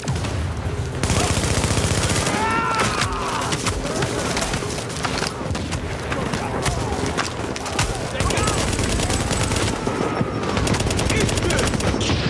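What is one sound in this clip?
Rapid gunfire rattles in close bursts.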